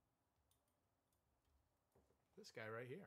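Small plastic toy parts click softly between fingers.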